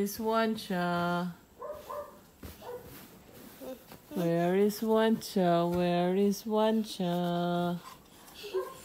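A young girl sings in long drawn-out notes close by.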